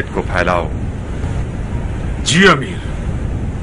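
An elderly man speaks briefly with emotion.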